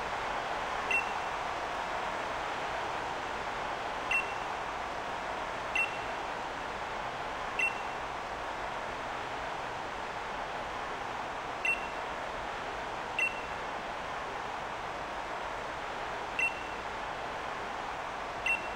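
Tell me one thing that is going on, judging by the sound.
A short electronic blip sounds now and then.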